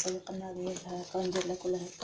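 A knife scrapes across a plant stalk.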